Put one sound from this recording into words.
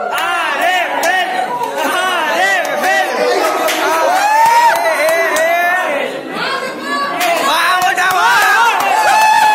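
A crowd of young men talk and shout excitedly nearby.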